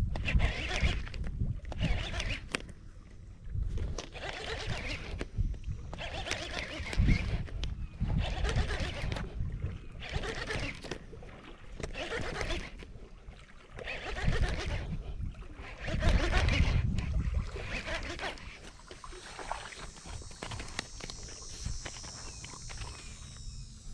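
Wind blows across open water outdoors.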